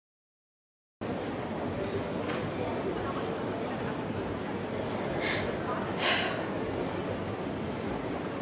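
A crowd of people murmurs in a large room.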